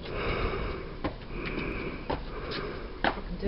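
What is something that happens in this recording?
Sandals step on hard paving.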